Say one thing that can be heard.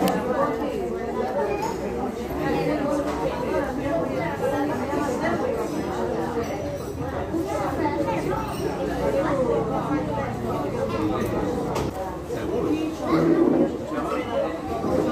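A young woman talks close by in a casual tone.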